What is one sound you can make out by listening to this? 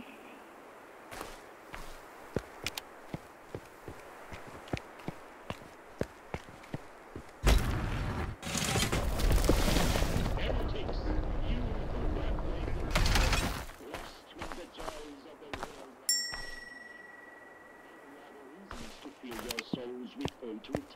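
Footsteps rustle slowly through grass and undergrowth.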